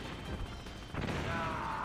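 A missile explodes with a loud boom.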